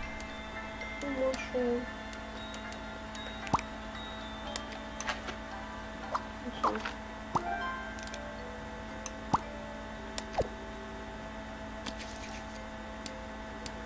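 Short electronic blips and chimes play.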